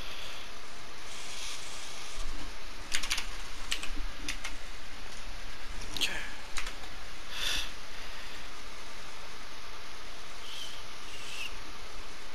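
Menu buttons click sharply a few times.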